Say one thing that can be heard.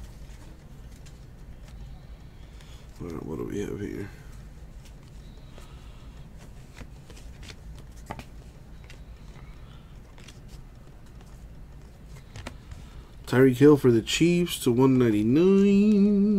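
Trading cards softly click and rustle as they are handled and flipped, close by.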